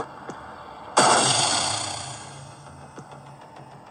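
A game's electric weapon fires with a loud crackling burst that slowly fades.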